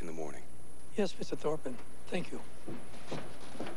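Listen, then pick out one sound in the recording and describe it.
An older man answers gruffly.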